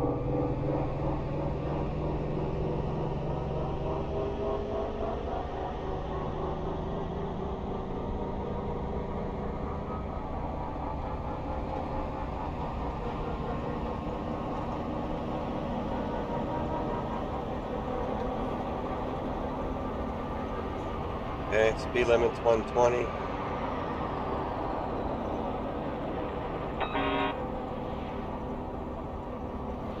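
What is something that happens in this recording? A heavy truck engine rumbles and drones steadily.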